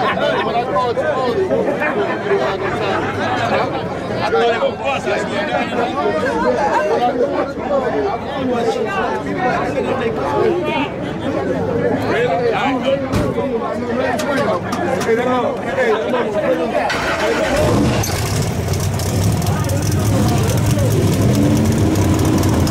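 A crowd of people chatters loudly outdoors.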